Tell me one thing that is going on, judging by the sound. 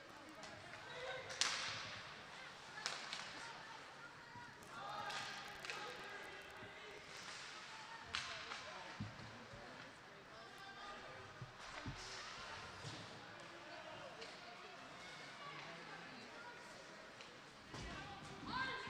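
A crowd murmurs and cheers in an echoing arena.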